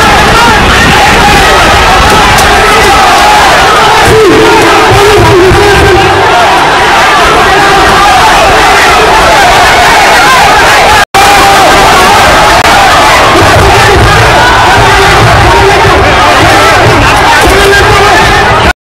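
A large crowd shouts and clamours outdoors.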